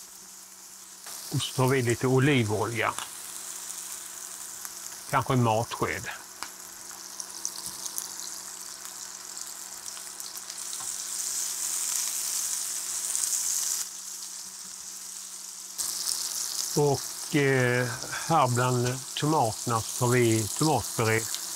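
Tomatoes sizzle in hot oil in a pan.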